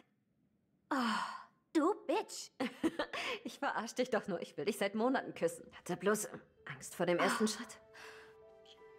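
A second young woman answers quietly up close.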